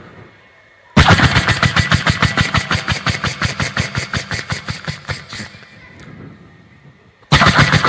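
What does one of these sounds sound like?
A man makes fast rhythmic beatbox sounds into a microphone.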